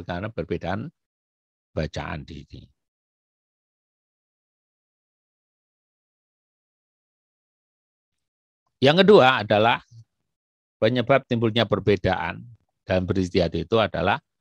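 A man speaks calmly into a microphone, in bursts with long pauses.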